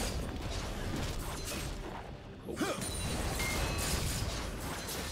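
Magic blasts and weapon hits crackle and burst in a fast video game fight.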